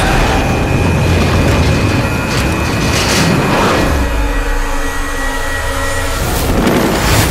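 A helicopter engine and rotor roar steadily, heard from inside the cabin.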